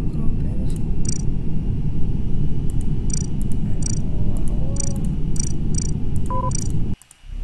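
Short electronic chimes sound as game menu options are picked.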